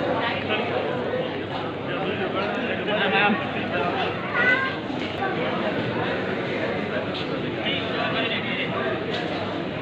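A crowd of people chatters in an echoing hall.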